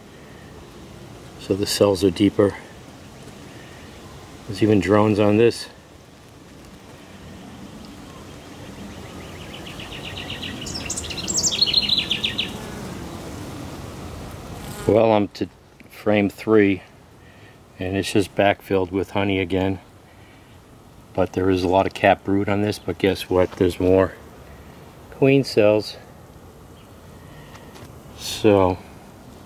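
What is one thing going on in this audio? Bees buzz steadily close by.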